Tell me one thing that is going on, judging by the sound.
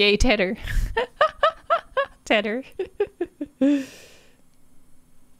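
A young woman laughs close to a microphone.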